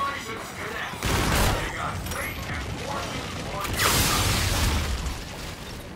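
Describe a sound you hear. A ray gun fires with loud electric blasts.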